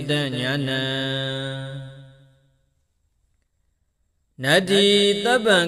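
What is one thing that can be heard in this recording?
A man chants in a long, drawn-out voice, close to a microphone.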